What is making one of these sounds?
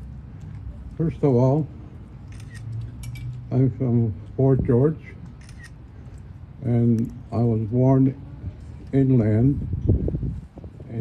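An elderly man speaks slowly and with feeling into a microphone, close by.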